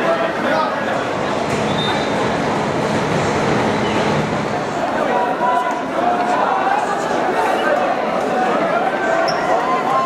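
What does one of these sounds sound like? Many men and women talk and call out outdoors.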